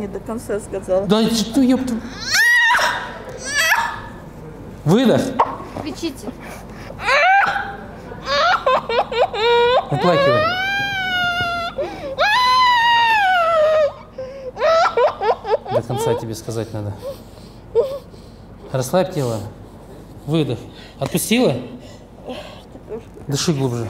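An older woman sobs and wails loudly.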